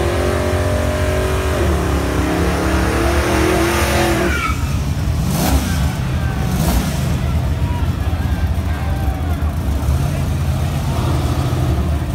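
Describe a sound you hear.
Car tyres squeal during a smoky burnout.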